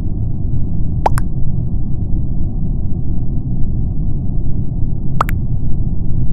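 A short electronic pop sounds as each chat message arrives.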